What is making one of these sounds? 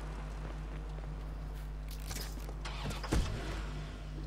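A car door thuds shut.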